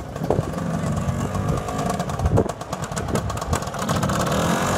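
A scooter engine putters and revs close by.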